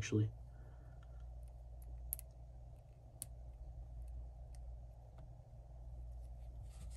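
Small plastic pieces click softly as fingers snap them together.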